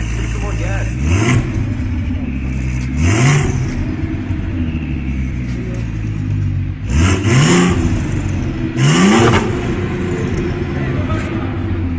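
A car engine idles with a deep, rumbling exhaust close by.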